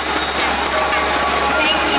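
A young woman speaks cheerfully through a microphone over loudspeakers.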